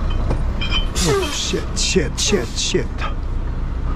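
A man speaks nearby in short phrases.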